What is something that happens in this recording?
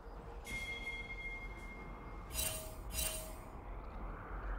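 Magical spell effects chime and whoosh in short bursts.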